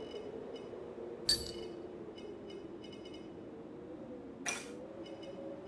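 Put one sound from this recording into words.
A short menu click sounds.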